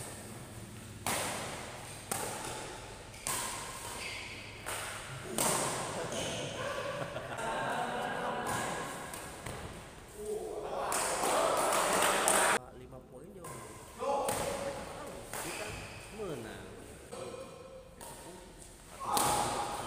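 Badminton rackets smack a shuttlecock back and forth, echoing in a large hall.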